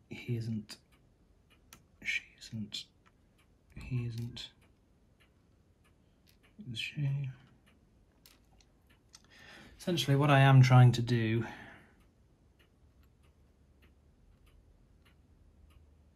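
Metal tweezers tick and tap lightly against small plastic parts.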